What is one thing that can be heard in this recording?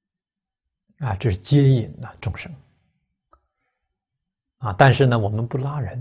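A middle-aged man speaks calmly and closely into a microphone, pausing between phrases.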